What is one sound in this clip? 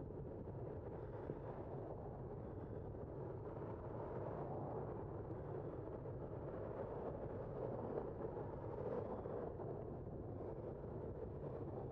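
Cars pass by on a nearby road.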